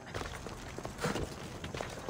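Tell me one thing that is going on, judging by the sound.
A fire crackles close by.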